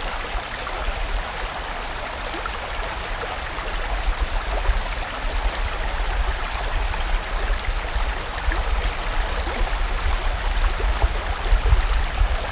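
A fast stream rushes and gurgles over rocks close by.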